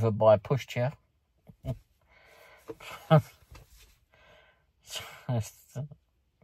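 An elderly man talks calmly and close up.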